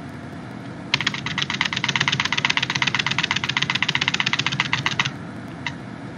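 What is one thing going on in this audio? Rapid clicks rattle off in a quick, steady burst.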